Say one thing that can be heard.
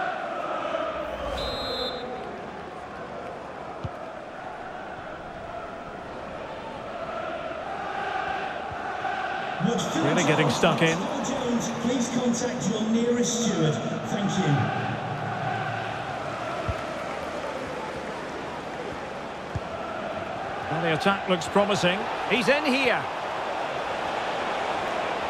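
A stadium crowd murmurs and chants steadily.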